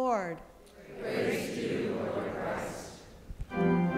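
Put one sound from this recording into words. A congregation answers together in a murmured spoken response.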